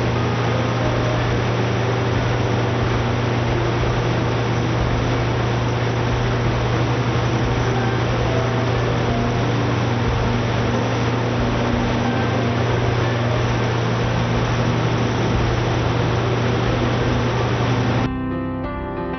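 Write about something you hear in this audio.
An engine runs with a loud, steady roar.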